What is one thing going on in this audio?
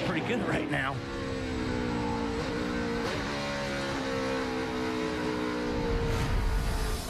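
A race car engine drones loudly and steadily from close by.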